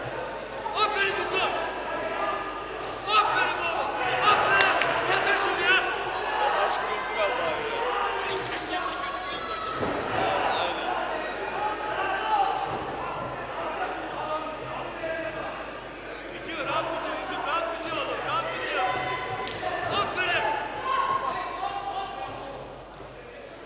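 A crowd cheers and shouts loudly in a large arena.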